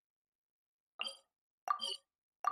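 Game menu clicks chime briefly.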